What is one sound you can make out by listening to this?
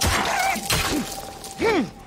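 A wolf snarls and yelps.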